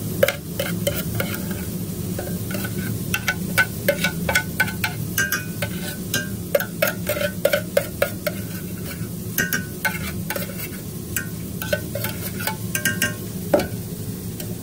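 A metal spoon scrapes and clinks against a steel pan.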